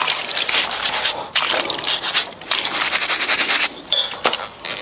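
A stiff brush scrubs a lobster's shell under splashing water.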